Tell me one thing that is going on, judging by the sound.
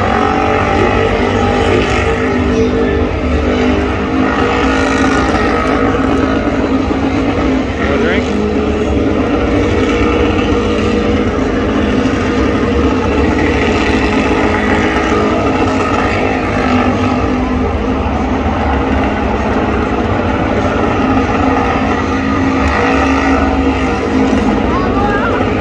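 Tyres screech in a burnout.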